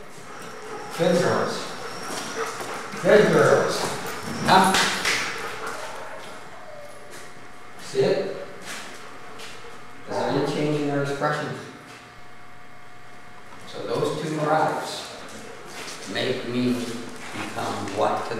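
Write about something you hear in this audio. A man speaks calmly in a room with some echo.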